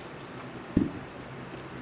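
A bowl thuds down on a hard floor.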